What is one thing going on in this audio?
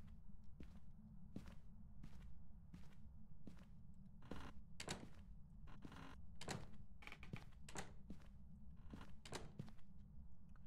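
Footsteps thud slowly and steadily on a hard floor.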